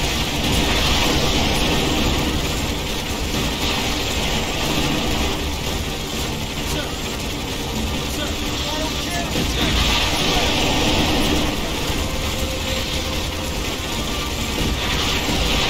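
Gunfire crackles steadily in a battle.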